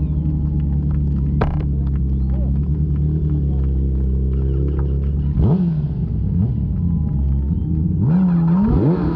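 An inline-four superbike engine revs while the bike stands still.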